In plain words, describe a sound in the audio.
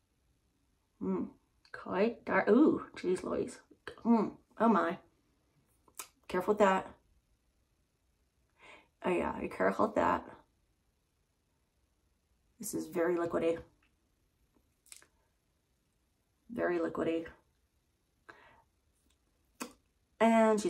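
A middle-aged woman talks calmly and close by, in short bursts with pauses.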